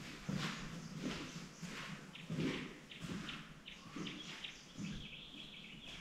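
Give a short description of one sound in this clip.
Footsteps cross a hard floor.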